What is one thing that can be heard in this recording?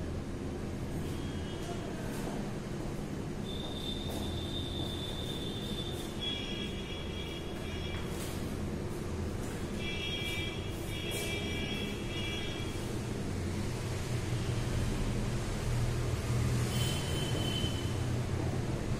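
A marker squeaks on a whiteboard in short strokes.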